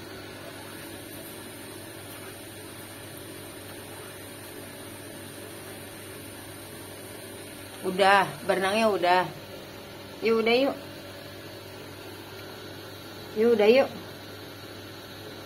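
Water trickles softly from a hose into a pool.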